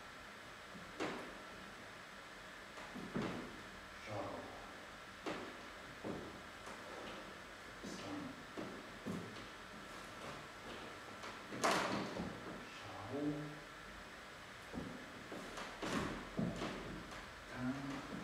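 Feet stamp and shuffle on a wooden floor.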